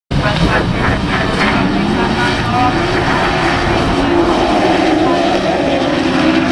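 Several racing car engines roar loudly, revving up and down outdoors.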